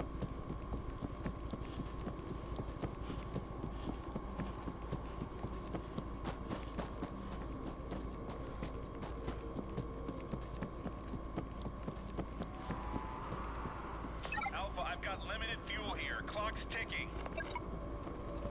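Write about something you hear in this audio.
Footsteps crunch quickly over gravel and grass.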